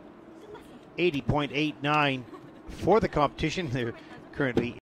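A young woman laughs and talks excitedly close by.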